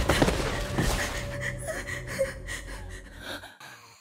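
Footsteps scuff slowly on a hard floor.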